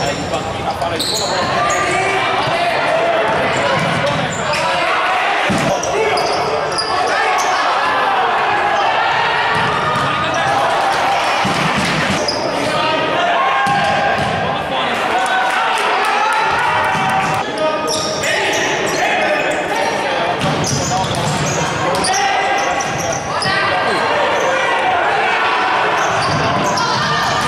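Shoes squeak on a hard indoor floor.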